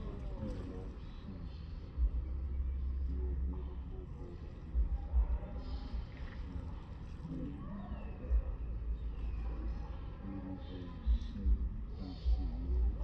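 Small waves lap gently against the shore.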